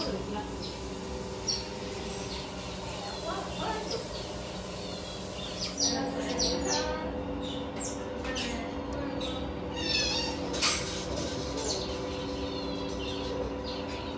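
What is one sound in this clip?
Otters chirp and squeak in high, quick bursts.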